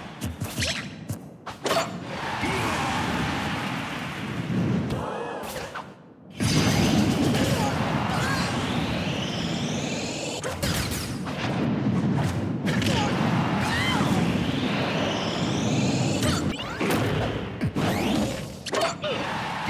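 Energy blasts crackle and hits thump during a fight.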